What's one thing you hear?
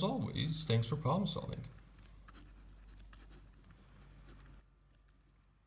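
A pen scratches across paper as it writes.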